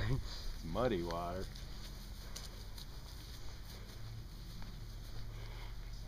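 Footsteps swish softly across grass.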